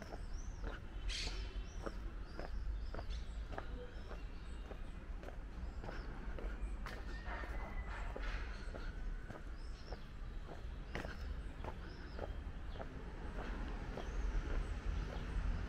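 Footsteps tap steadily on a cobbled street.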